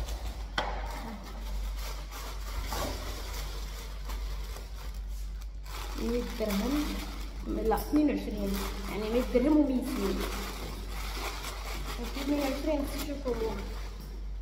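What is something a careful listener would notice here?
Paper rustles as a box is unpacked.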